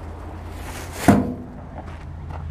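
A lid slams shut with a loud thud.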